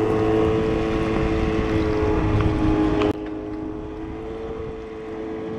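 A snowmobile engine drones steadily just ahead.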